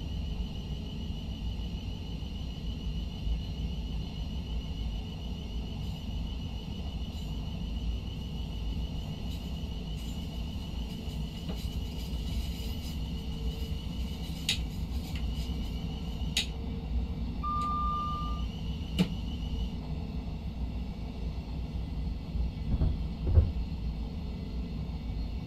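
A train's motor hums and rumbles steadily as it runs along the rails.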